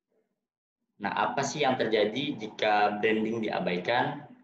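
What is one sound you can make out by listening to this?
A young man speaks calmly through a microphone on an online call.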